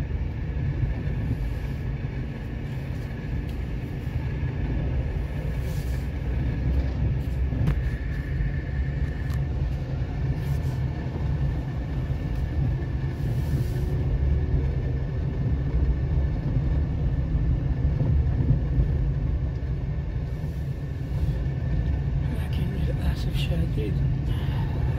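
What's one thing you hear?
A car drives along a road, heard as a low rumble from inside.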